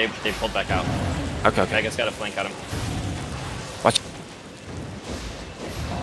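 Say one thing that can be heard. Magic spells burst and crackle in a busy fight.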